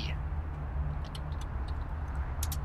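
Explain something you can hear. Keyboard keys click quickly as someone types.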